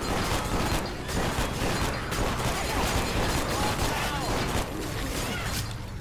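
Zombies snarl and groan.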